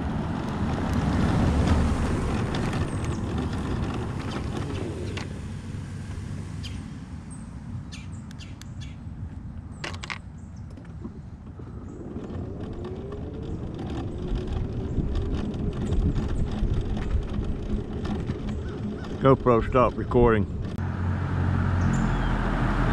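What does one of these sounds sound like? An electric scooter motor whines as it rolls along.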